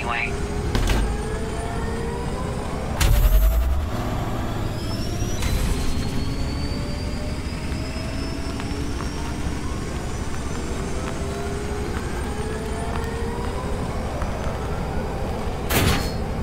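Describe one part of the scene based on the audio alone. A hull splashes and rumbles over water.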